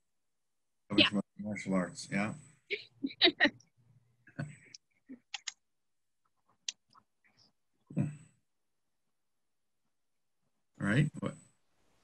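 A man talks and laughs over an online call.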